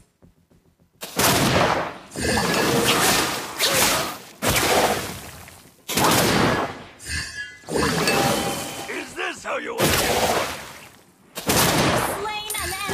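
Fiery spell blasts whoosh and roar in bursts.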